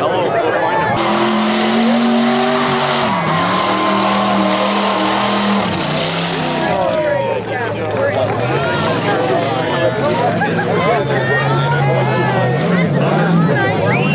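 An off-road truck engine roars and revs loudly.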